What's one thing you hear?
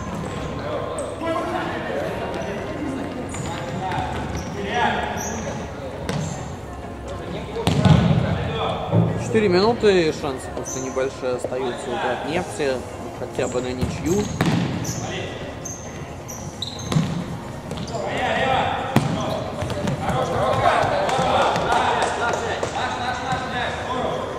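Men shout to each other across the court.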